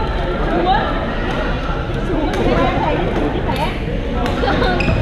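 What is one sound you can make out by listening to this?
Many young men and women chatter and call out at a distance in an echoing hall.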